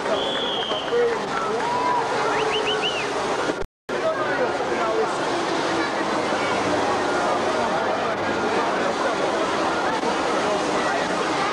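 A steel band plays a lively tune outdoors.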